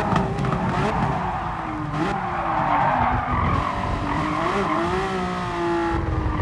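A racing car engine roars, its pitch rising and falling as it speeds up and slows down.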